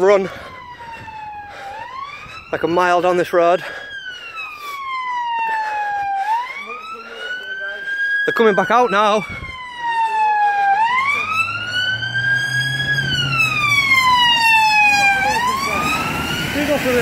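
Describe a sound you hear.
A siren wails nearby, rising and falling.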